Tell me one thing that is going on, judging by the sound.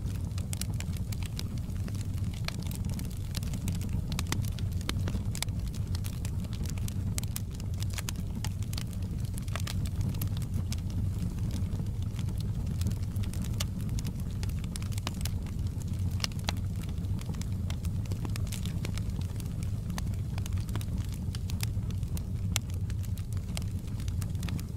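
Flames roar low and steadily.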